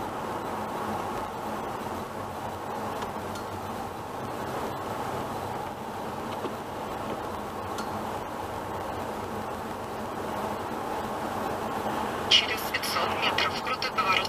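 A car's engine hums steadily as it drives along a road.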